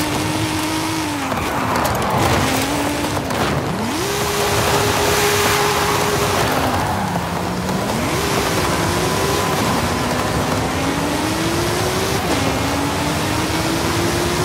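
Exhaust pops and crackles when the throttle lifts.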